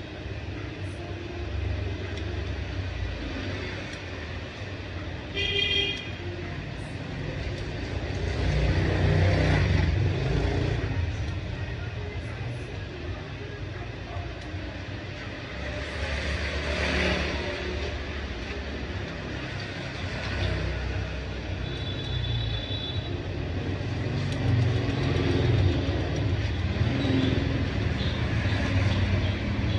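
Barber's scissors snip through hair.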